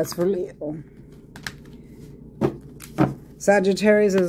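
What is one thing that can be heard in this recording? Playing cards rustle and tap as they are handled.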